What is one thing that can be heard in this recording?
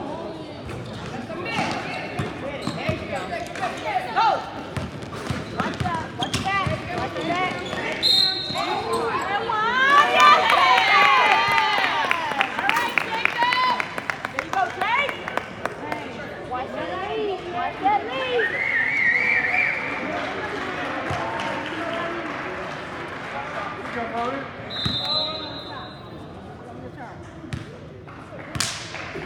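Spectators and players shout and cheer in an echoing gym.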